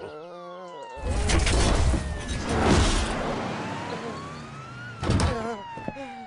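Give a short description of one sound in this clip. A heavy crash rumbles as dust bursts up.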